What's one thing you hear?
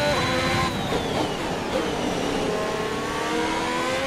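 A racing car engine screams and drops in pitch as the car brakes.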